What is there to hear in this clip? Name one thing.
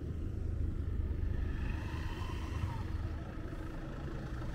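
A motorbike drives past.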